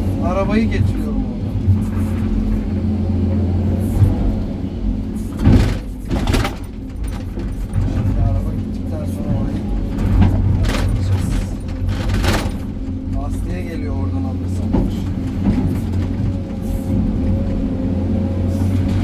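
A diesel engine drones and rumbles steadily up close.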